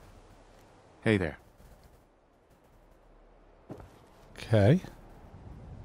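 A man speaks calmly in short phrases nearby.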